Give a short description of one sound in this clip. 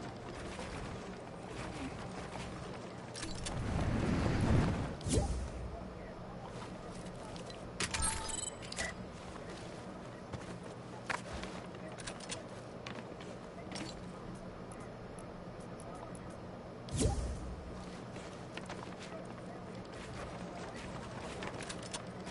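Wooden walls clack into place in quick bursts.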